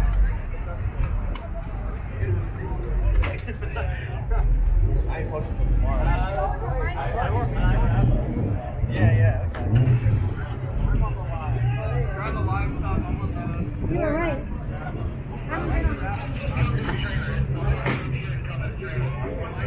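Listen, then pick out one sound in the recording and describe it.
A crowd of men and women chatter around outdoors.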